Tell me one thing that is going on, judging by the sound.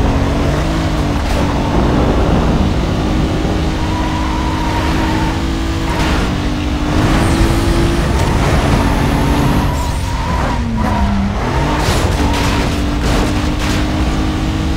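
Tyres rush over a snowy road surface.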